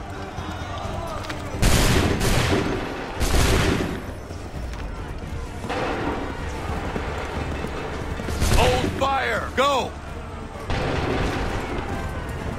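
A horse's hooves thud along at a gallop.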